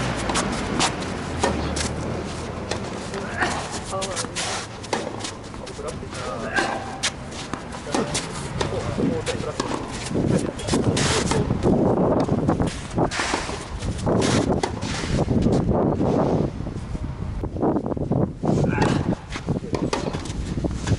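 Sneakers scuff and patter on a hard court.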